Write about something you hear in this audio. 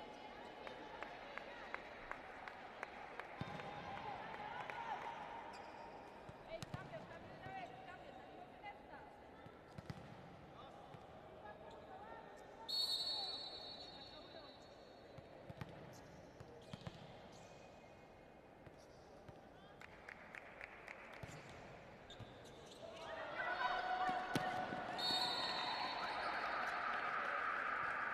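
A crowd cheers and chatters in a large echoing hall.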